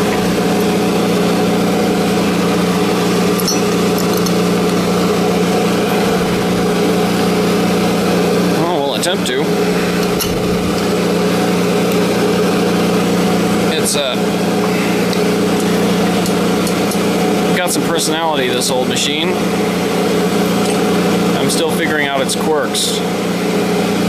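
A machine motor hums steadily close by.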